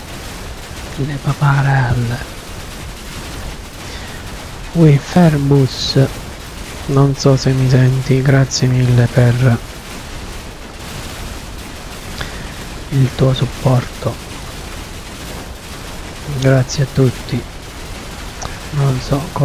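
A man talks calmly and close to a microphone, in bursts with pauses.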